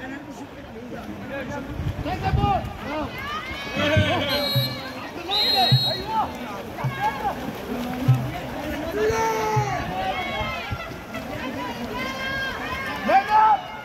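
A man shouts from the poolside.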